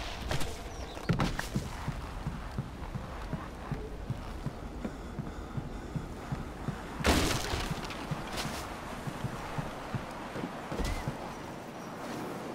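Footsteps thud steadily on a wooden deck.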